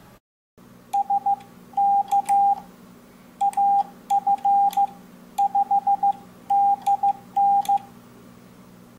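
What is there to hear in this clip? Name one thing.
Steady Morse code beeps sound in short bursts.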